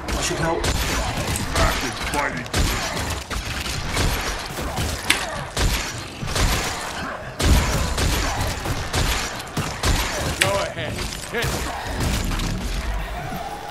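Weapon strikes and magic impacts crash in a video game battle.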